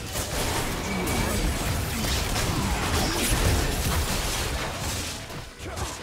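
Fantasy game spells crackle and burst in a busy battle.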